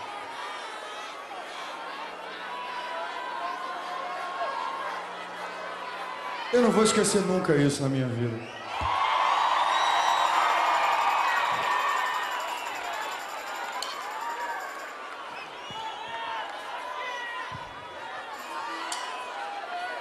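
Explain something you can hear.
A large crowd cheers and screams in a big hall.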